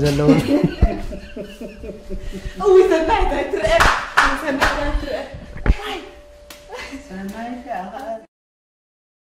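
A middle-aged man laughs heartily close by.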